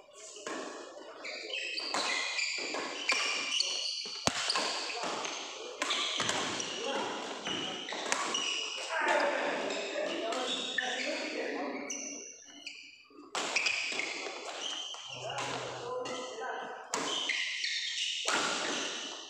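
Shuttlecocks are hit with sharp pops by rackets in a large echoing hall.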